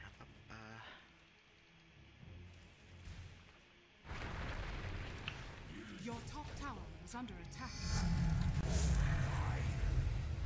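Fantasy combat effects whoosh and clash.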